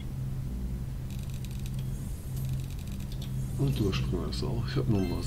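Magical sparkling chimes shimmer.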